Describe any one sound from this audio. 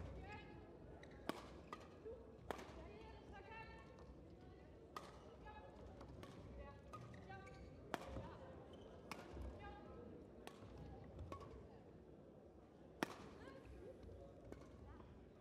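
Sports shoes squeak on a court floor.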